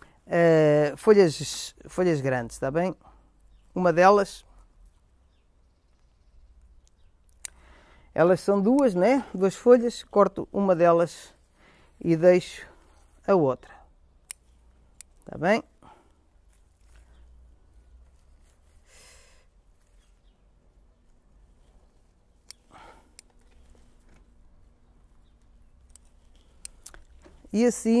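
Small shears snip leaves with short clicks.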